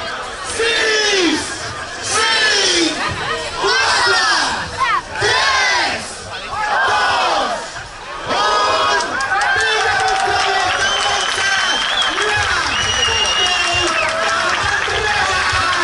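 A large crowd shouts and cheers in bursts outdoors.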